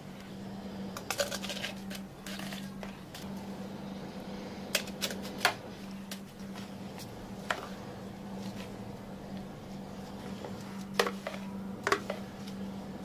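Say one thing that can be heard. A thick frozen drink glugs and plops from a blender jug into cups.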